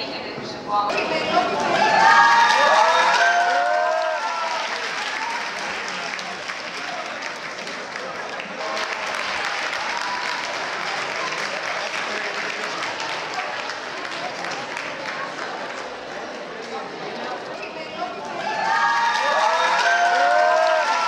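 A choir of young women sings.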